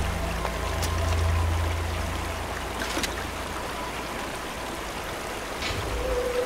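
Water from a waterfall rushes steadily.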